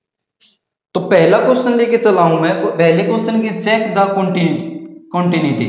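A man speaks clearly and steadily into a close microphone, explaining.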